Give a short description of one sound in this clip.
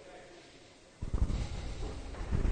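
A cue strikes a billiard ball.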